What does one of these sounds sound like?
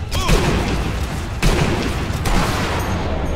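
A rifle shot booms sharply.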